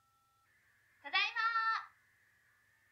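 A short, bright electronic jingle sounds loudly.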